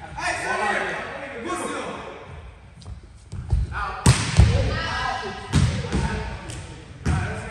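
Young men call out and talk across an echoing indoor hall.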